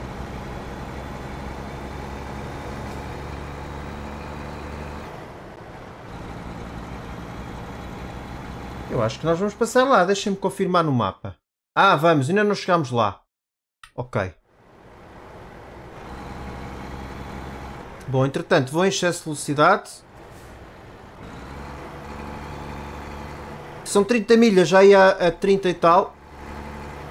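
A truck engine hums steadily at low speed.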